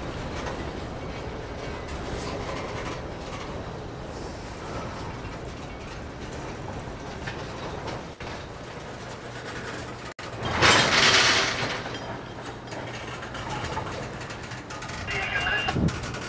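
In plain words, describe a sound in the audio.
A long freight train rumbles past with wheels rolling on the rails.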